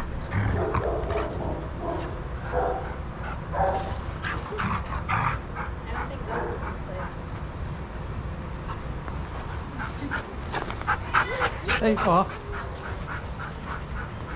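Paws scuff and patter on sandy ground.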